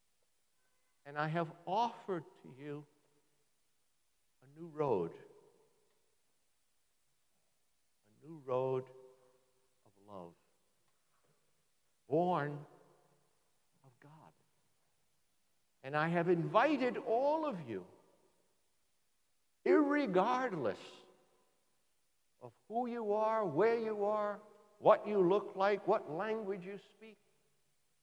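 An elderly man speaks calmly in phrases with pauses, heard through a microphone in an echoing room.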